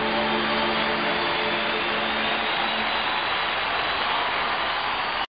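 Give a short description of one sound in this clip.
A huge crowd cheers and applauds in a vast open space.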